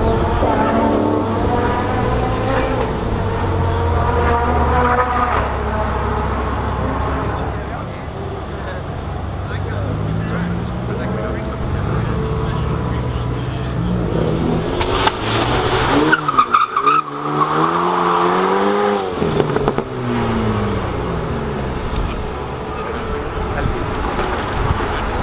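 A car engine revs hard and roars up and down.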